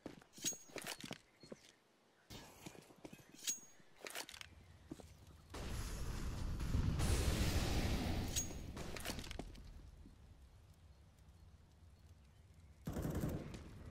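Footsteps run across hard ground.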